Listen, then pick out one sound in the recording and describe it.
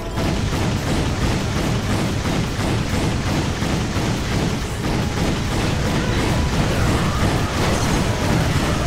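A blaster fires rapid bursts of shots.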